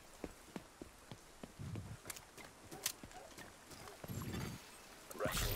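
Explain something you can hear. Footsteps tread steadily on a hard, littered ground.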